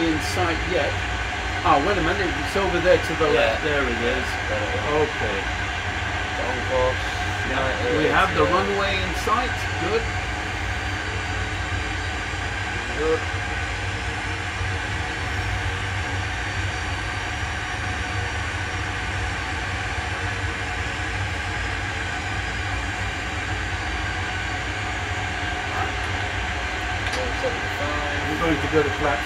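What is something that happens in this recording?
A steady low engine hum drones.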